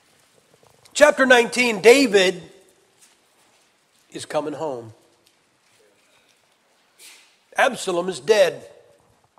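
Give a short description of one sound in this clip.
A middle-aged man speaks calmly into a microphone, in bursts with pauses.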